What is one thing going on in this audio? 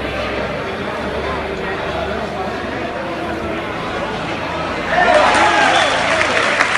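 A crowd of spectators murmurs and calls out in an echoing hall.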